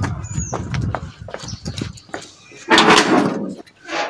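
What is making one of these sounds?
A metal door bolt rattles and clanks.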